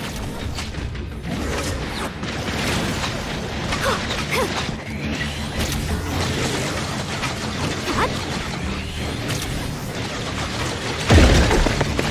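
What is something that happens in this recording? Blows and magical blasts clash in a fast fight.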